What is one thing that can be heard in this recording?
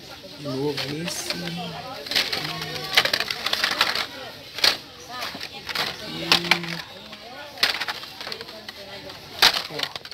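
Plastic toy packages rustle and clack as a hand sorts through them.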